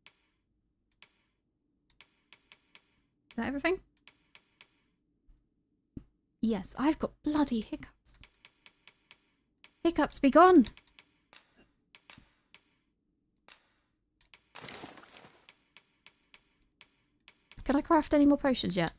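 Soft game menu clicks tick quickly as a cursor moves between items.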